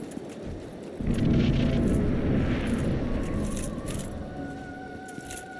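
A deep rushing whoosh swells and slowly fades.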